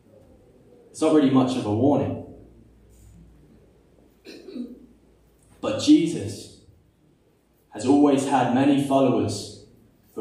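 A young man speaks calmly into a microphone in a slightly echoing room, with pauses between phrases.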